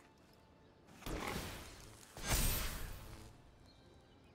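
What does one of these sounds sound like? A soft magical whoosh sounds as a card is played.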